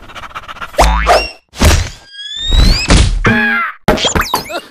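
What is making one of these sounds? A small body thumps onto a wooden floor.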